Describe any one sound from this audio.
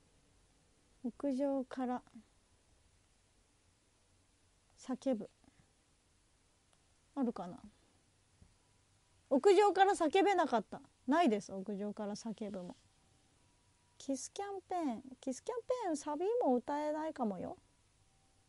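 A young woman talks close to a microphone, in short bursts with pauses.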